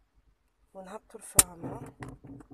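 A gear lever clunks as it shifts into place.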